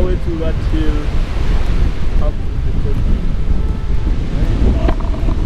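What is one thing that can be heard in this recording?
Wind gusts and rumbles loudly outdoors.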